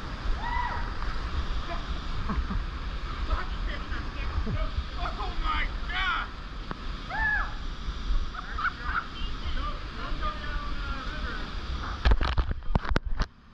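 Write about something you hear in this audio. River water rushes and churns close by.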